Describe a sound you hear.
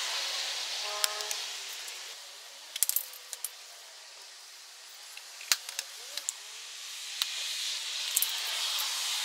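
A plastic wheel cap clicks and snaps into place.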